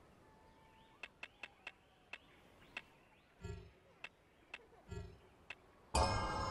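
Short soft clicks tick several times in quick succession.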